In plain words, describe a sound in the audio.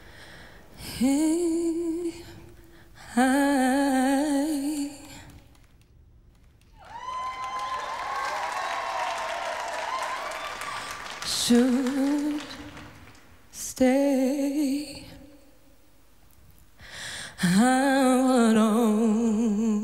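A young woman sings with strong emotion into a microphone, in a large echoing hall.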